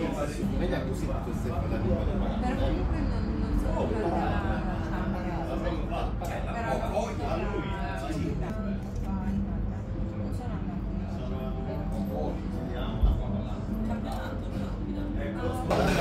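A knife and fork scrape and clink against a metal dish.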